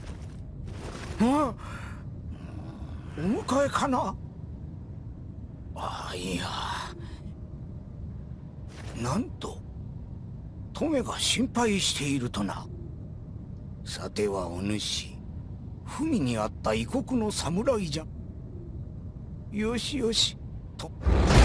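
A man speaks calmly in a dubbed voice.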